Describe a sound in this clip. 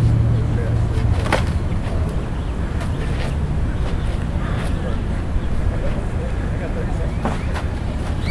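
Padded gloves strike and knock against each other.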